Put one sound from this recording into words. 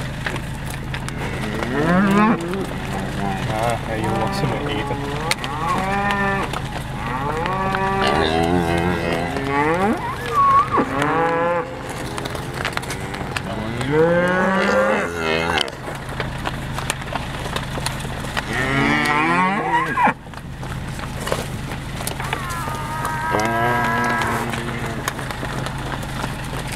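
Cattle hooves clop on an asphalt road.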